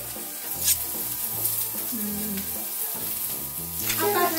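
Raw meat sizzles on an electric grill plate.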